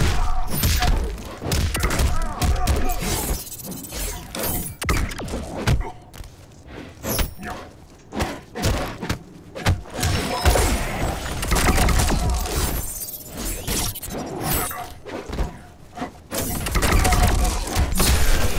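Punches and kicks land with sharp thuds in a fighting game.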